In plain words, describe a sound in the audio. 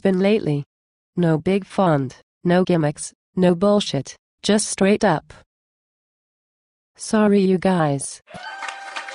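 A woman's synthetic computer voice speaks calmly in short phrases, close up.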